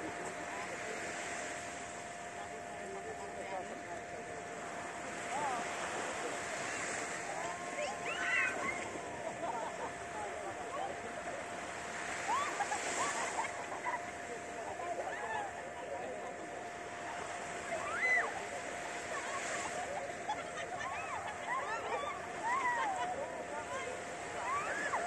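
Small waves wash gently onto a sandy shore outdoors.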